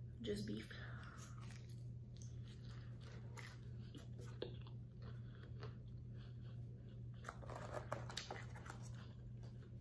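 A young woman bites into a crunchy fried corn dog and chews.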